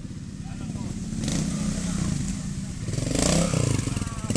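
A motorcycle engine revs nearby.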